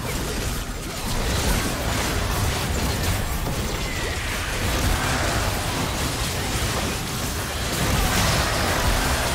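Magic blasts and impacts crackle rapidly during a busy video game battle.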